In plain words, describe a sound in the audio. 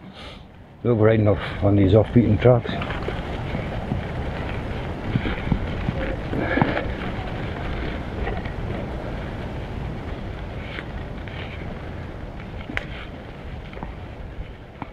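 Bicycle tyres roll and crunch over a bumpy dirt trail.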